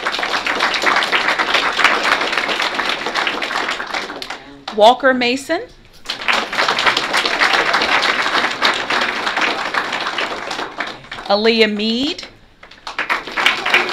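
An audience claps and applauds.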